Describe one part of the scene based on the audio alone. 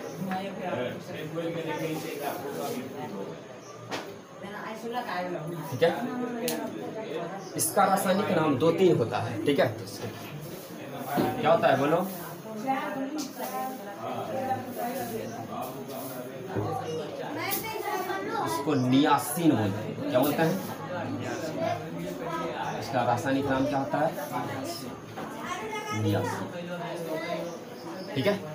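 A woman speaks calmly and explains, close by.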